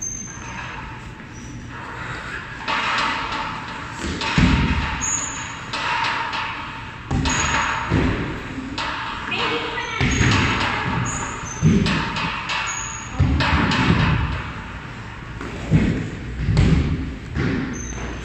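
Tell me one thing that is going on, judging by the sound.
Footsteps thud on a rubber floor close by.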